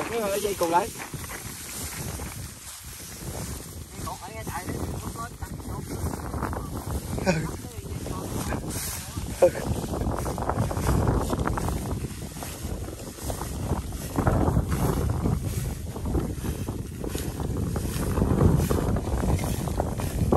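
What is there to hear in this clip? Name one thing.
Footsteps crunch through dry straw.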